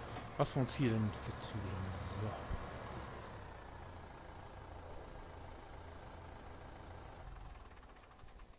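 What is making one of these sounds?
A tractor engine idles with a low rumble, then fades away.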